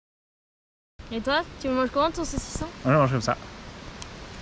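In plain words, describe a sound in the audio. A young woman exclaims excitedly close by.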